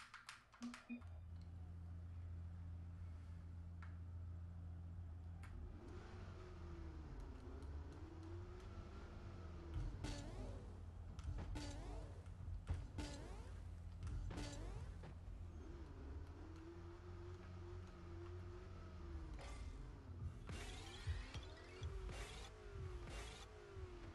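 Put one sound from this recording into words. A video game car engine hums and revs up and down.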